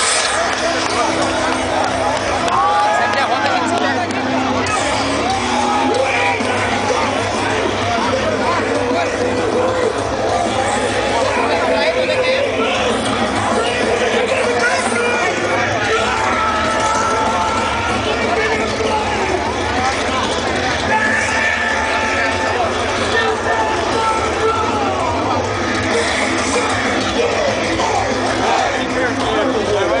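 A large outdoor crowd chatters and murmurs all around.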